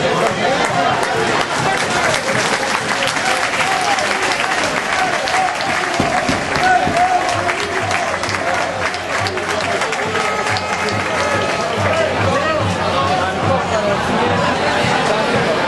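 Players clap their hands toward the stands.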